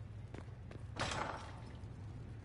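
A wooden door swings open with a thud.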